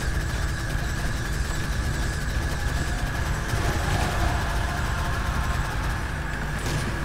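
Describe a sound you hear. A rapid-fire gun fires a fast, rattling stream of shots.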